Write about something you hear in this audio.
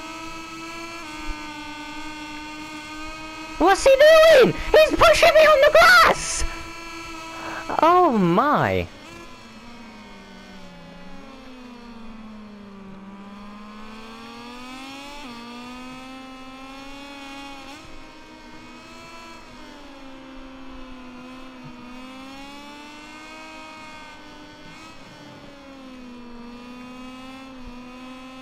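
A motorcycle engine whines loudly, its pitch rising and falling as it speeds up and slows down.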